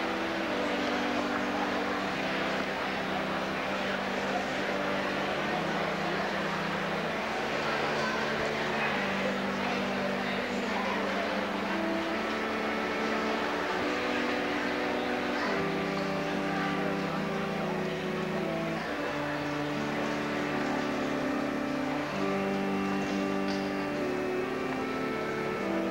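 A crowd of adults murmurs and chats in a large echoing hall.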